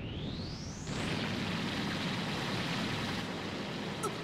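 A powerful energy aura roars steadily.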